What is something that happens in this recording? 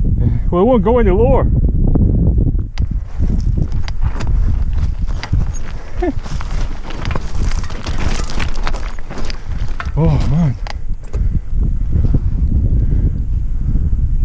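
Bicycle tyres crunch and skid over loose stones.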